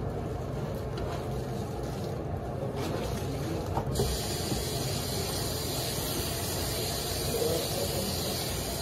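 Tap water runs steadily into a sink.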